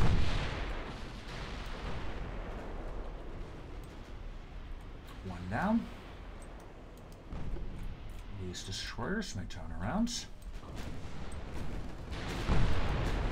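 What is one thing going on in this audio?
Heavy guns boom in deep, rumbling blasts.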